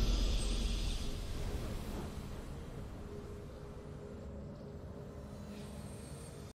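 A triumphant game fanfare rings out and slowly fades.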